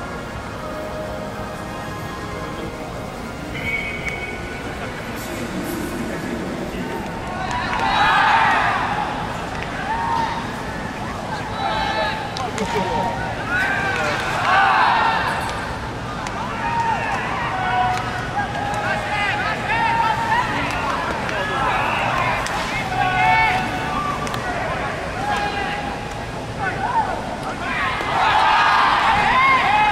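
A crowd murmurs and cheers in an open stadium.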